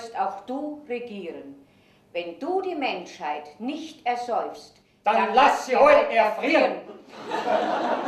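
A woman speaks expressively on a stage.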